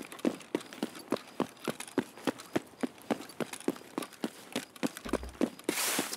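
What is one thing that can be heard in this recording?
Footsteps thud quickly and evenly on hard ground.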